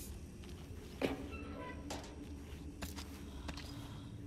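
A metal toolbox clatters and clicks open.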